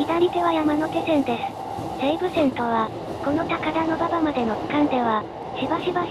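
Another train rushes past close by in the other direction.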